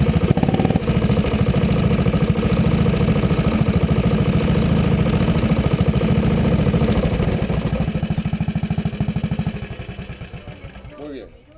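A go-kart engine buzzes loudly close by, then dies down.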